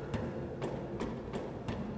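Hands and boots clang on the rungs of a metal ladder.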